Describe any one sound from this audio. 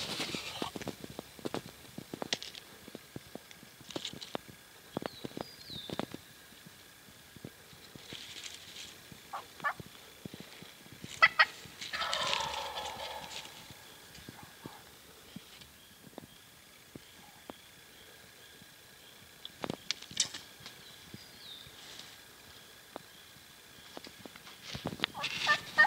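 Turkeys walk through dry leaves, rustling and crunching them.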